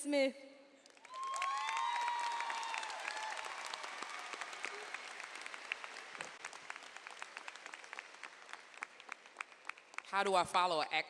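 A large crowd applauds and cheers in an echoing arena.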